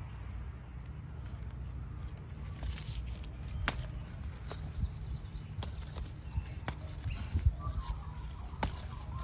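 Leaves rustle and twigs click as a hand handles a plant.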